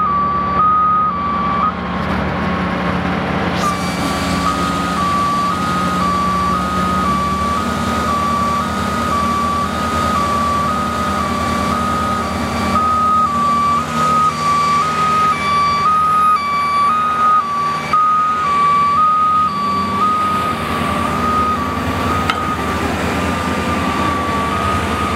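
A large diesel engine idles nearby with a low, steady rumble.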